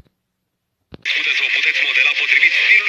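A man speaks, heard through a television broadcast.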